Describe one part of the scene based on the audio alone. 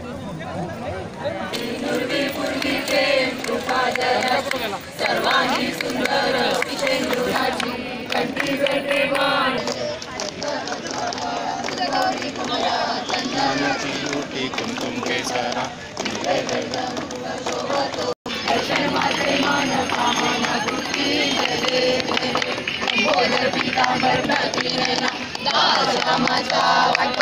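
A crowd of men and women sing together loudly nearby.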